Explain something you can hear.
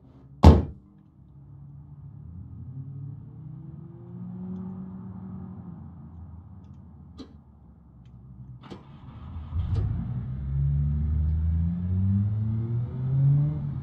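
A car engine runs and rises in pitch as it speeds up.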